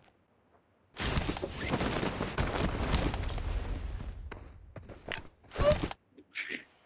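Footsteps patter quickly over the ground.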